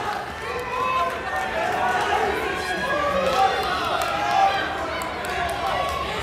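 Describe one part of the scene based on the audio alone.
Wrestlers' bodies thump and scuff on a mat.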